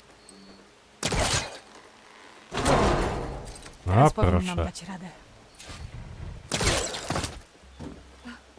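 A grappling line whooshes in short loud bursts.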